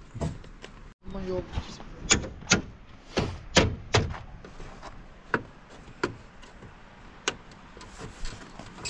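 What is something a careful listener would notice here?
Plastic knocks and clicks as a car's headlight is pushed into place.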